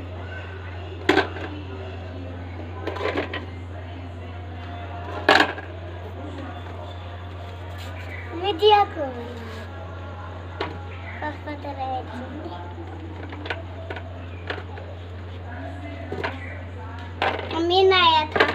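Young children talk and call out nearby.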